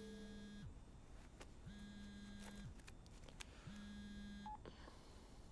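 A phone ring tone beeps in repeated bursts.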